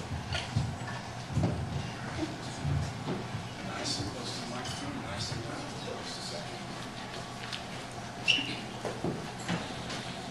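A woman speaks into a microphone over a loudspeaker.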